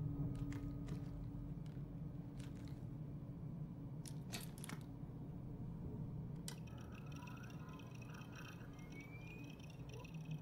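Small buttons click as a hand presses them.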